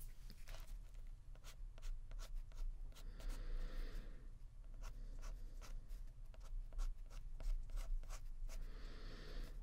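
A marker pen squeaks and scratches across paper.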